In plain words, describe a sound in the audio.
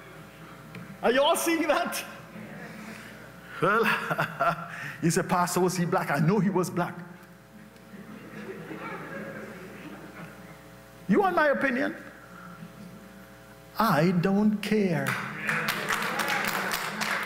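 An elderly man preaches with animation into a microphone, in a large echoing hall.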